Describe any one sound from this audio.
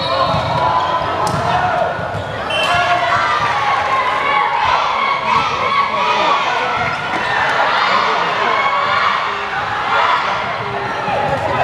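A crowd of spectators chatters and cheers loudly in an echoing hall.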